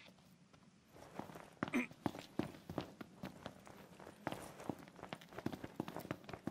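Footsteps thud quickly on a hard road as a young man runs.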